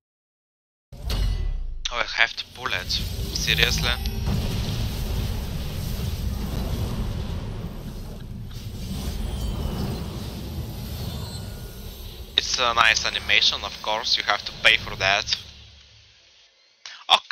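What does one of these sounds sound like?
A deep whooshing rumble swells, then slowly fades.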